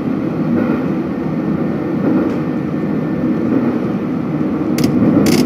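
A train rumbles steadily along the rails.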